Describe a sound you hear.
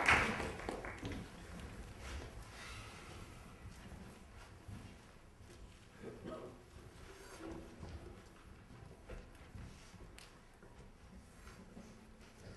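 A folk string orchestra plays softly.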